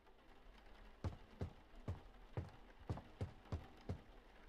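Footsteps thud steadily on stairs.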